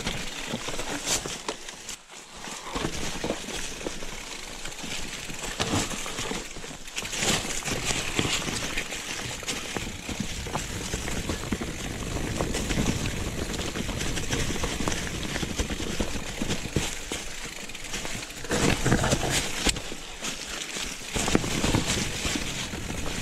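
Bicycle tyres crunch and rattle over dry leaves and dirt on a bumpy trail.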